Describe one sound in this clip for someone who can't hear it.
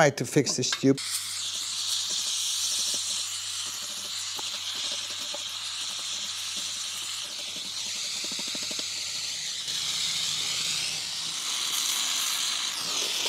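A gas torch flame hisses steadily.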